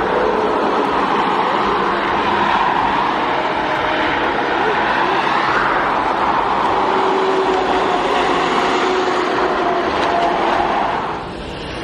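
Cars and trucks pass by on a highway.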